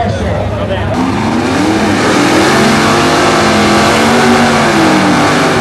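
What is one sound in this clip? A car's tyres squeal and screech as they spin in place.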